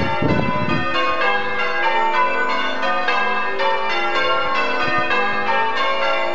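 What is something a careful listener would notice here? Church bells ring out in a rapid peal.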